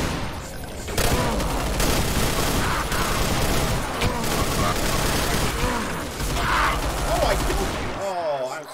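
A gun fires in rapid bursts with loud blasts.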